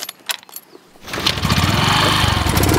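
A motorcycle engine kicks into life and revs loudly.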